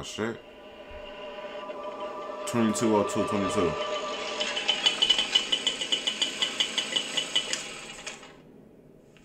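Music plays through speakers.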